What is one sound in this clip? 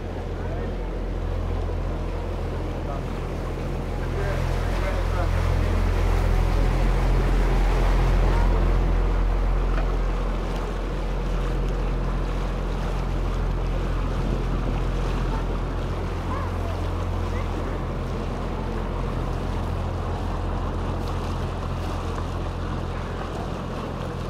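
Water splashes and swishes against a moving boat's hull.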